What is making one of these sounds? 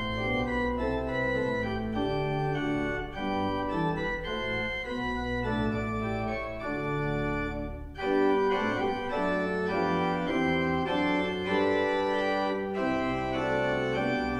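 A pipe organ plays slow, sustained chords that ring out in a large echoing hall.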